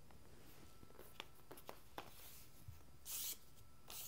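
Adhesive tape crinkles softly as it is pressed down.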